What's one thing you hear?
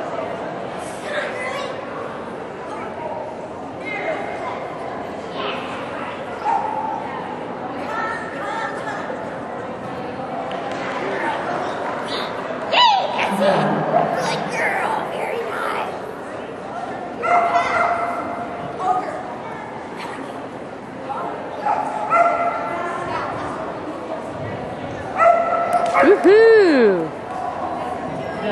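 A woman calls out commands to a dog with animation.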